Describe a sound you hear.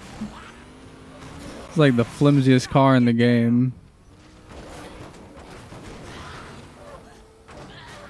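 A car engine revs.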